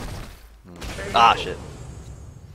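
A punch lands with a heavy impact.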